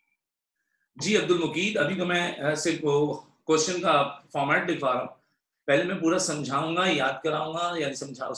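A man speaks calmly into a close microphone, as on an online call.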